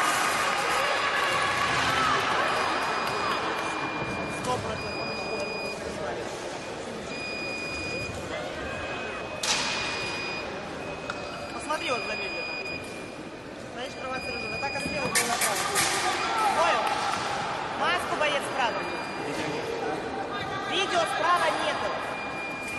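Voices echo through a large hall.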